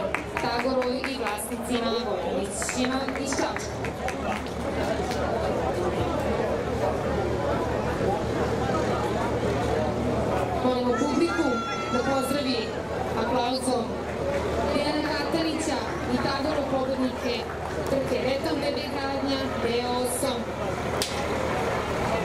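A man talks nearby in a lively way.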